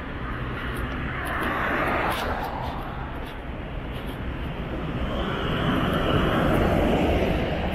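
Cars pass by on a road nearby.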